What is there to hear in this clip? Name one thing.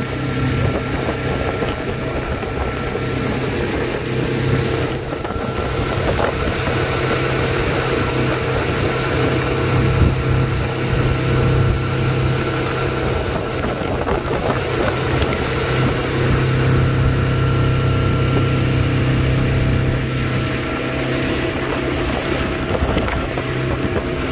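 A motorboat engine drones steadily at speed.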